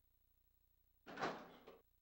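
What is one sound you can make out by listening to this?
A heavy door opens.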